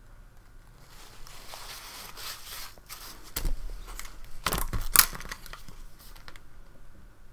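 A small sketchbook rustles and knocks as it is handled close by.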